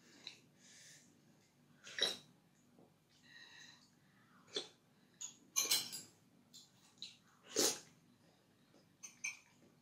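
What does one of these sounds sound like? A spoon clinks against a ceramic bowl.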